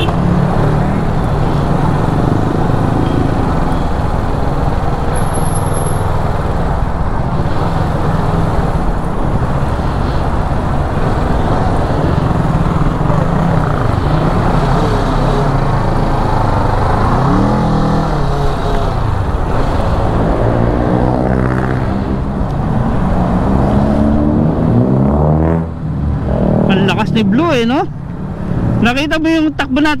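A motorcycle engine hums and revs up and down as it rides.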